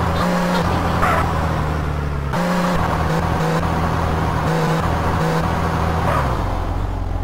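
A sports car engine drones steadily as the car drives.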